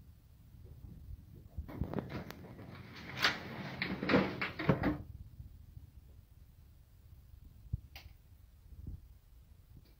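Metal chest lids creak open and thud.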